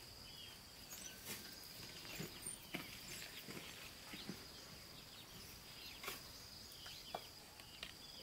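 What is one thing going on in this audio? A wheelbarrow rattles as it rolls over ground.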